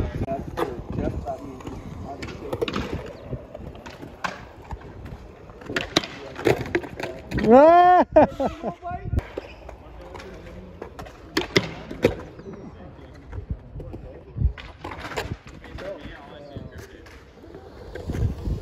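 Skateboard wheels roll over smooth concrete.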